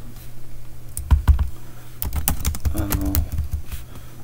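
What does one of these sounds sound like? Keys on a keyboard click quickly in a burst.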